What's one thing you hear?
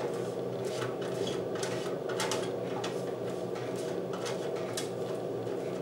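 A pastry brush swishes softly against a metal baking tin.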